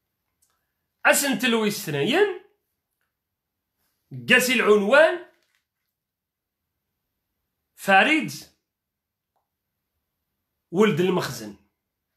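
A young man speaks calmly into a close microphone, in short phrases with long pauses.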